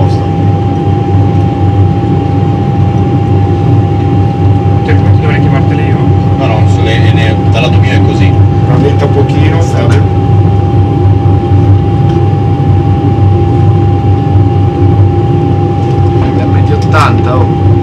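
A deep, steady roar of aircraft engines and rushing air fills the cockpit.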